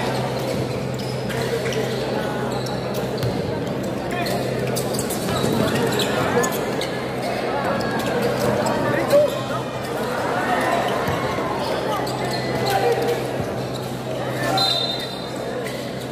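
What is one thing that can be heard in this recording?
A large crowd cheers and chatters in a big echoing gym.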